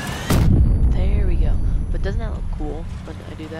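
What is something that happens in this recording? A large explosion booms and rumbles away.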